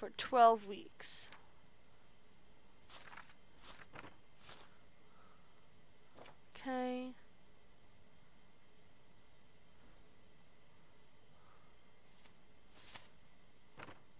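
Papers shuffle and slide across a desk.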